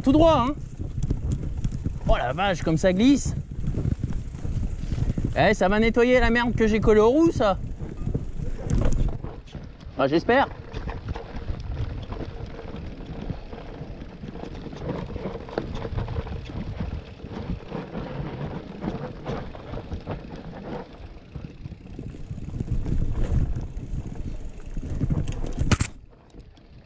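A bicycle frame and chain rattle over bumps.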